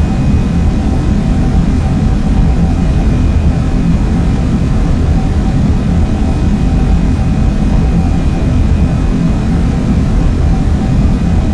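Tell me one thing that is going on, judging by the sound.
An electric motor hums steadily with a low whine.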